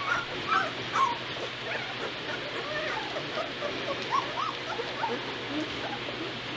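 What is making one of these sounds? Puppies whimper and squeal with high, short cries close by.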